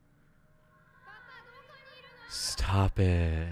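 A young boy calls out loudly, echoing in a large hall.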